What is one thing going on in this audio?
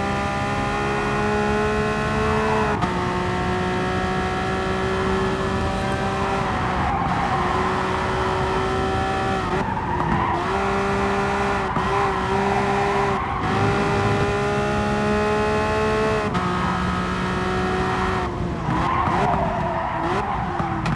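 A racing car engine roars at high revs, climbing and dropping in pitch as it shifts gears.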